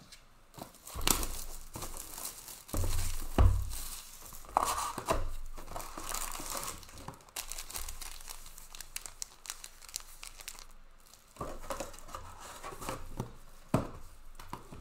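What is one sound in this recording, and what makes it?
Card boxes knock and thud against a table.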